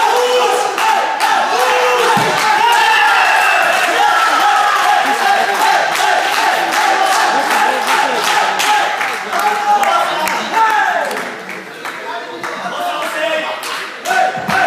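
A crowd of men shouts and cheers loudly in an echoing hall.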